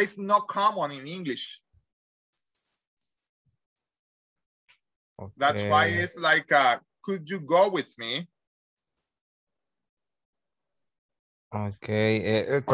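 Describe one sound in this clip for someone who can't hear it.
A man speaks with animation through an online call, in bursts with pauses.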